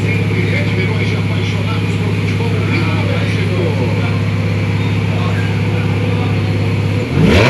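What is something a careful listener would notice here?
A Ferrari F430 V8 engine idles close by.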